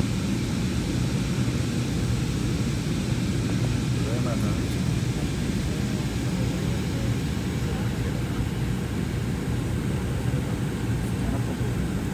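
A jet airliner's engines drone steadily in the cabin.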